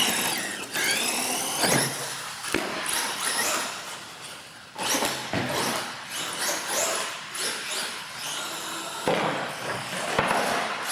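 A small electric motor whines, revving up and down.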